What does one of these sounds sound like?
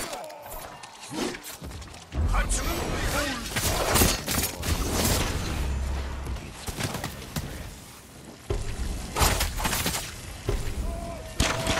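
Swords slash and clang in a fast fight.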